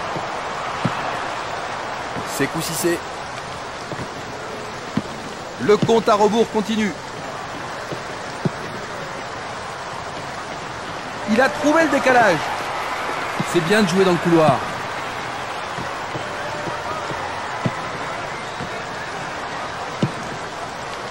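A football is kicked with short dull thuds now and then.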